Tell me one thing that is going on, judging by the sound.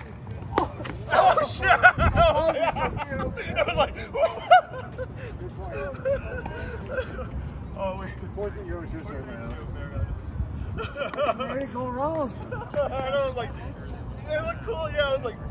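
Men talk and call out to each other nearby outdoors.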